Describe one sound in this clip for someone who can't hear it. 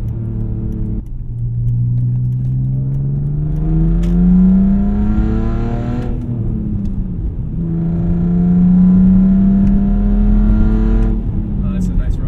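A car engine revs hard, rising in pitch as it speeds up, then drops when the gear changes.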